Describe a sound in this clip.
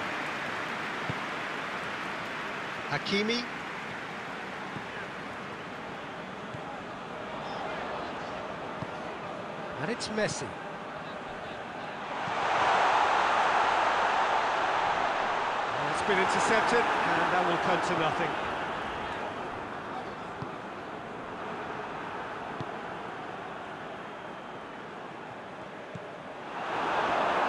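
A stadium crowd roars steadily, swelling louder at times.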